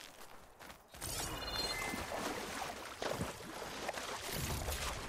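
Water splashes as a body wades through a lake.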